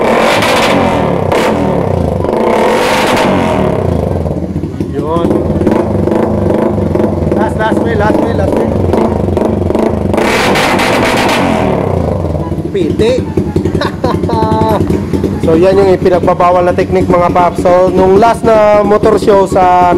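A motorcycle engine idles loudly with a rough, popping exhaust.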